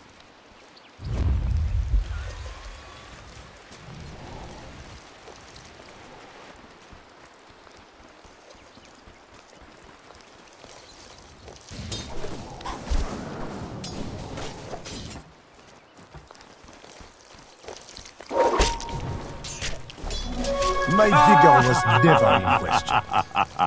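Game spells whoosh and blast during a fight.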